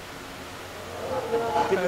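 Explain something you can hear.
A man speaks into a microphone.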